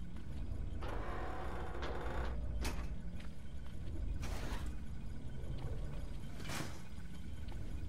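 A metal grate clanks and rattles as it is pulled loose.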